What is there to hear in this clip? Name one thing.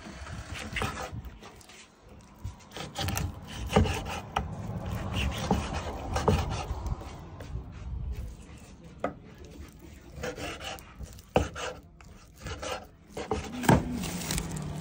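A large knife chops through raw goat meat onto a wooden chopping block.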